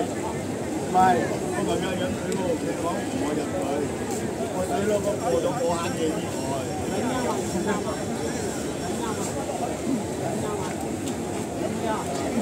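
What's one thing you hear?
A large fire crackles and roars.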